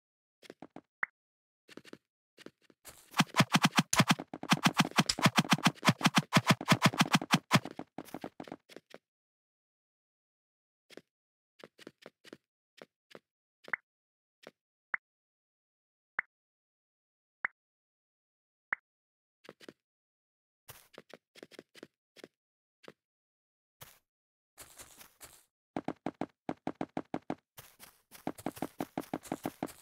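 Footsteps patter quickly.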